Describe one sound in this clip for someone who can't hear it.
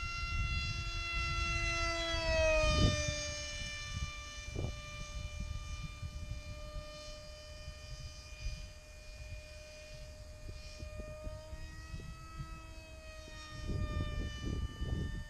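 A model jet engine whines high overhead, its pitch dropping as it passes and then holding steady.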